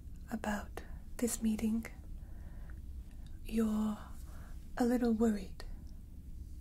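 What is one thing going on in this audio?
A young woman speaks calmly and softly, close to a microphone.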